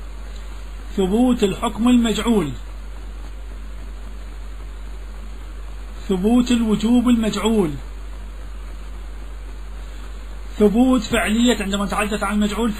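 A man chants in a melodic voice, in bursts with pauses between.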